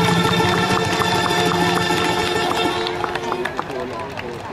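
A traditional ensemble plays music outdoors, then stops.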